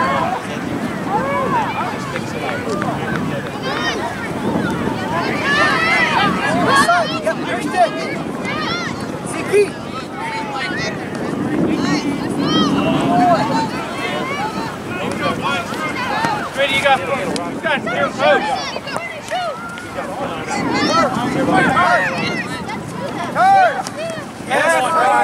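Spectators cheer and shout from a distance.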